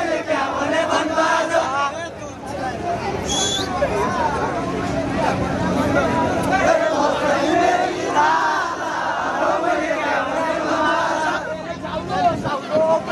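A crowd of young men and women sing and chant together outdoors.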